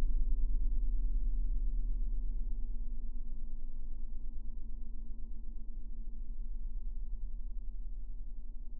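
A glowing electric tube gives off a steady low hum.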